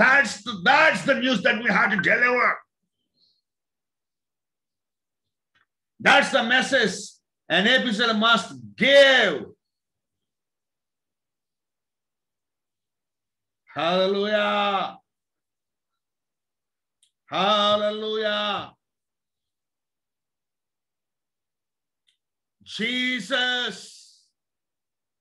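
A middle-aged man speaks close to a microphone, in short bursts with long pauses.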